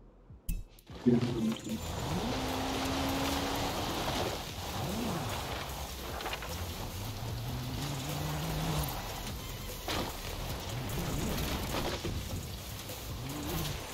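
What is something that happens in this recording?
A car engine roars and revs at high speed.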